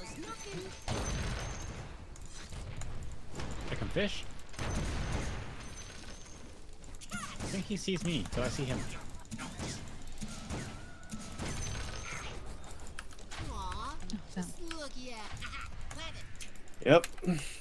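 Game spell effects crackle and boom.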